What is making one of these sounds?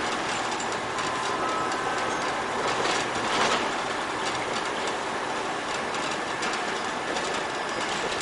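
A bus drives along a street.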